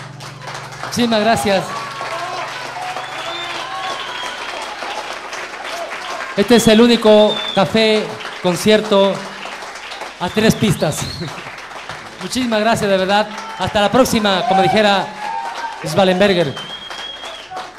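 A middle-aged man sings into a microphone.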